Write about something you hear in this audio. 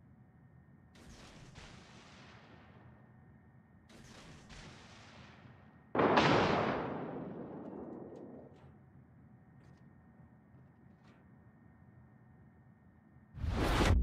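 A warship's guns fire loud booming salvos that rumble away.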